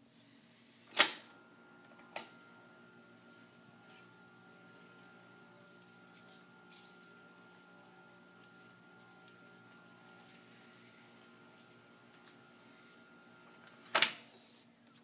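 A switch on a tape machine clicks loudly.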